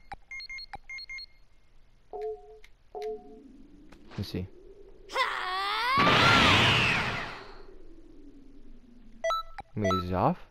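Menu selection blips beep quickly.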